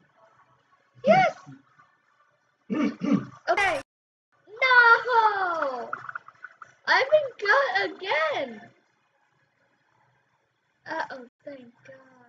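A child talks with animation into a nearby microphone.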